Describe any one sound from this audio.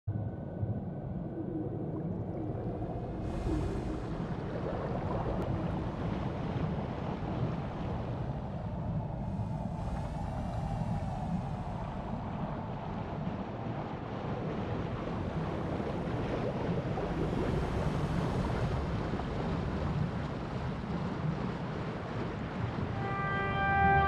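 Water rumbles and swirls steadily all around, as if heard underwater.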